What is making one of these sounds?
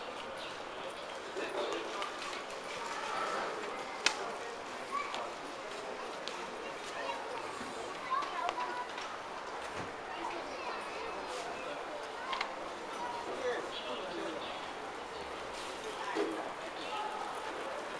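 Footsteps of passers-by tap on a hard tiled floor.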